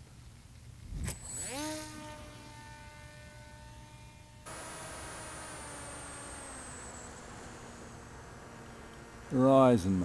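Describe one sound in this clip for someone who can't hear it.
An electric propeller motor whirs up to a high, steady whine.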